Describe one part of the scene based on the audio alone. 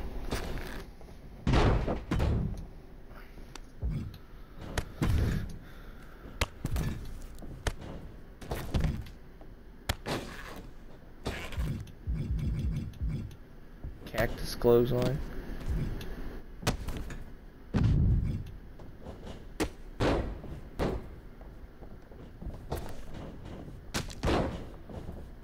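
Heavy thuds of bodies slamming onto a wrestling mat ring out again and again.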